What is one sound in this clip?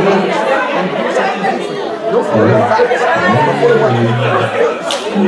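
Several adults talk and chatter in a large echoing hall.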